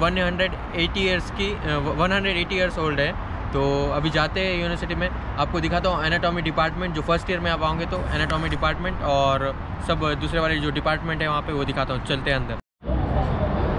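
A young man talks with animation close to the microphone outdoors.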